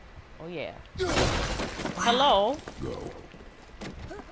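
A thrown axe smashes into wooden planks with a loud crack.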